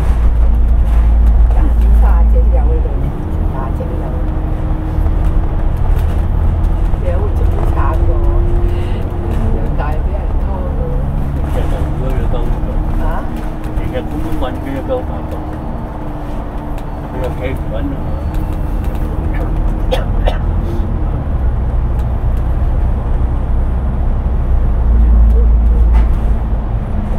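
A bus engine rumbles and hums steadily while driving along a road.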